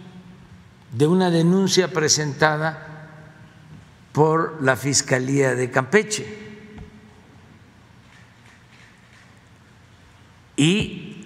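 An elderly man speaks emphatically into a microphone in short bursts.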